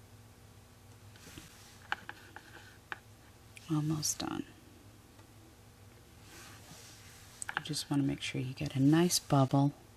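A pen tip taps softly on a hard surface.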